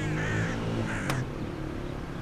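A car door clicks open.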